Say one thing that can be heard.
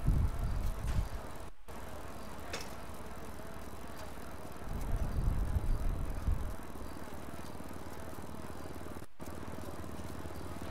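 Bicycle tyres roll and rattle over pavement.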